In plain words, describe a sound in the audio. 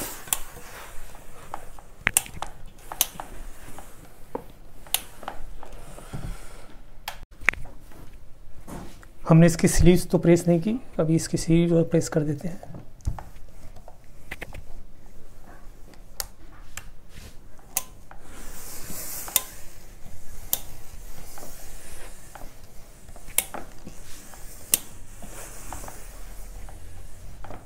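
An iron slides and scrapes softly over cloth.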